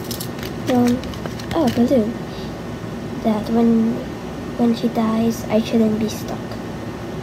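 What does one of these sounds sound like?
A young girl talks close by in short phrases.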